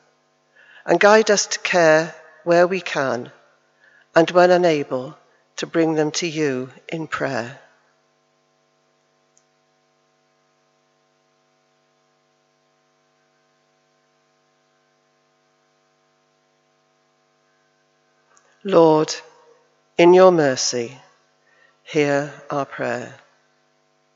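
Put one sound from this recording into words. An elderly woman reads out calmly through a microphone.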